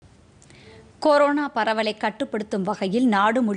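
A young woman reads out news calmly into a microphone.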